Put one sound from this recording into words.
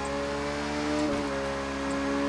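A motorcycle engine briefly dips at a gear change.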